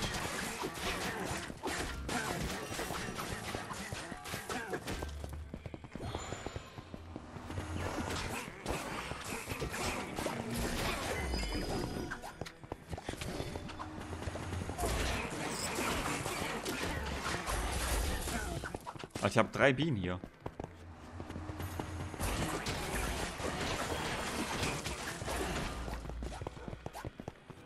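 Game combat sounds clash and pop throughout.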